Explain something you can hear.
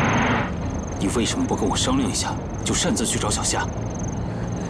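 A woman speaks sharply.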